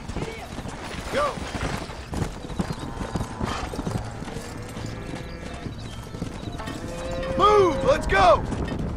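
Cattle low and bellow loudly.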